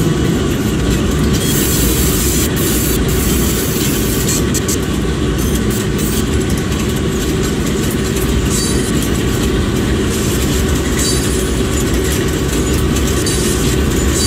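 Diesel locomotives rumble steadily as they pass close by.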